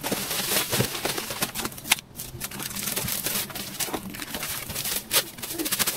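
Footsteps crunch on dry plant debris.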